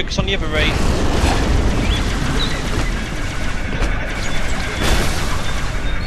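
A plasma weapon fires with buzzing zaps.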